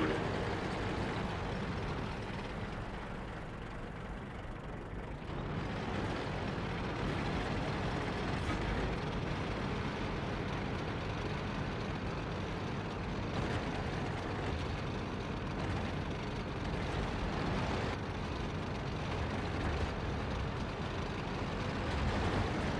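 A tank engine rumbles steadily as the tank drives.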